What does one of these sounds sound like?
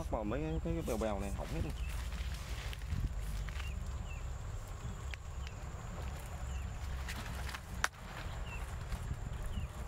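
Footsteps rustle through dense leafy plants.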